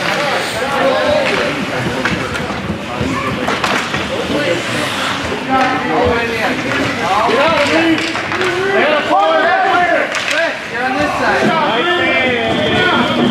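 Young children shout and call out across an echoing rink.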